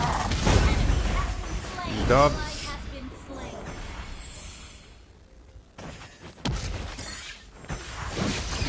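Fantasy combat sound effects whoosh and burst.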